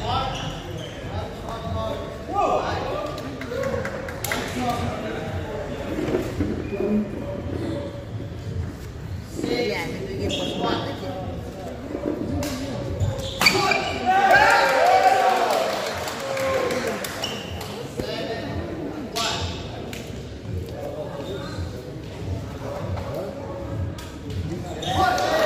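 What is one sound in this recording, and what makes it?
Rackets strike a shuttlecock in a rally, echoing in a large hall.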